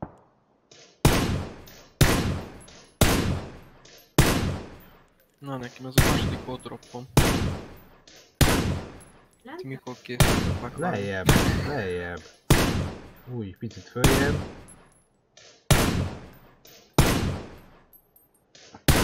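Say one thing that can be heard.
A rifle fires single loud shots again and again, each ringing out and fading.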